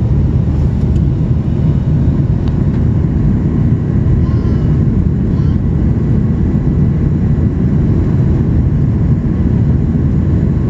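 A jet engine roars with a steady, deep rumble inside an airplane cabin.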